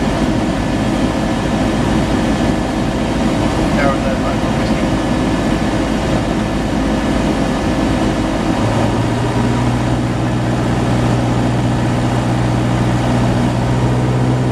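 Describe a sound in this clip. Aircraft engines drone steadily, heard from inside a cabin.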